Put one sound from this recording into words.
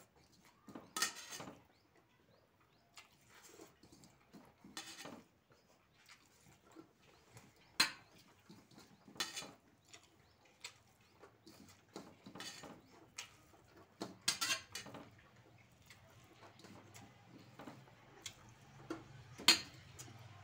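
Fingers squish and mix rice on a metal plate.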